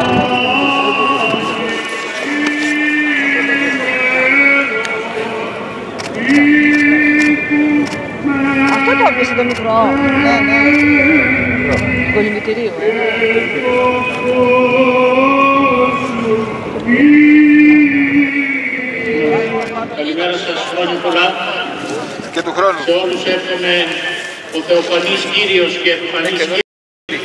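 Men chant a slow, sustained hymn through a loudspeaker, outdoors.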